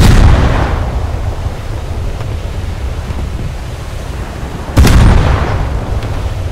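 Heavy ship guns fire with loud booming blasts.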